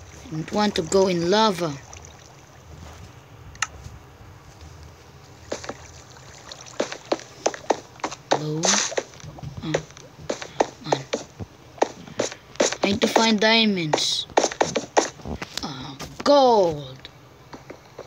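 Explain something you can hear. A boy speaks with animation close to a phone microphone.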